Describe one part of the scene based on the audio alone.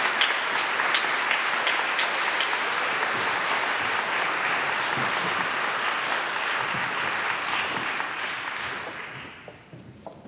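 An audience applauds loudly in a large echoing hall, then the clapping dies away.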